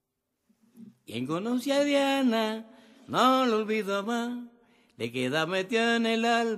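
An elderly man sings close by.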